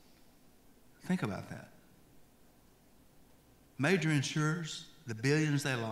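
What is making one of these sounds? An older man speaks calmly into a microphone, heard through loudspeakers in a large echoing hall.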